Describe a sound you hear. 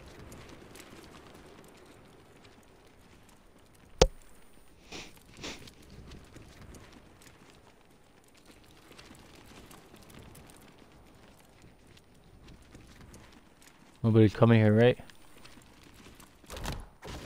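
Wind rushes softly past a glider descending through the air.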